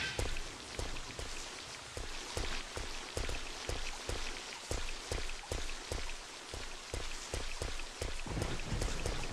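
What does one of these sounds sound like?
Footsteps run on stone.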